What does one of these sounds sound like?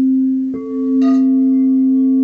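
A mallet strikes a singing bowl with a bright ring.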